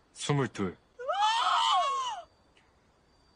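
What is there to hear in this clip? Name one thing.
A young woman exclaims loudly in surprise.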